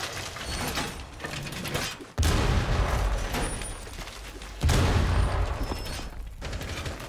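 Heavy metal panels clank and slam into place.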